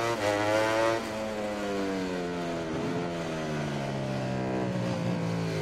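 A motorcycle engine drops in pitch as the bike slows into a corner.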